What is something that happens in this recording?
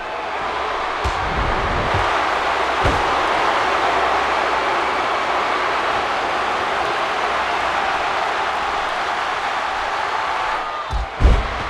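Heavy bodies slam down onto a wrestling ring with deep thuds.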